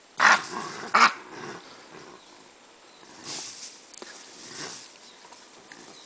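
Dry brush rustles and crackles as an animal pushes through it.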